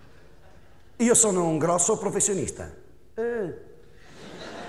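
A middle-aged man laughs loudly.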